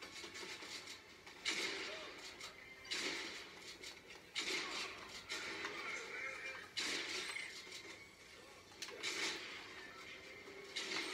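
Video game sound effects play through a television speaker in loud bursts.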